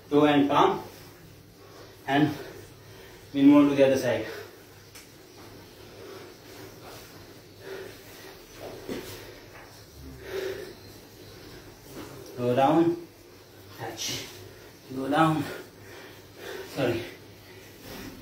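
A man speaks loudly in short bursts close by.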